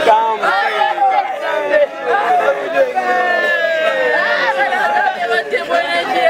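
A crowd of women sings loudly together close by.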